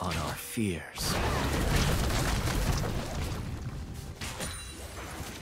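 Magic blasts roar and crackle in a fight.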